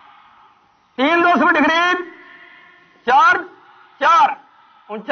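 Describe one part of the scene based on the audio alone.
A man shouts loud commands outdoors.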